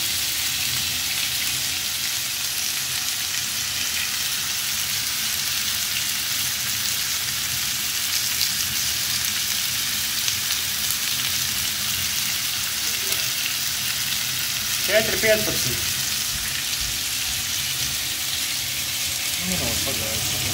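Meat sizzles steadily in a hot pan.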